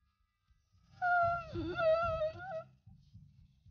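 A cartoon squirrel whines in a long, wavering squeal.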